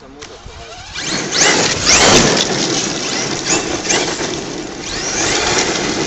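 A toy car's electric motor whines loudly as it speeds and skids across gravel.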